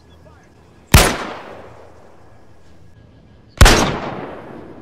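A rifle fires two loud shots that echo away.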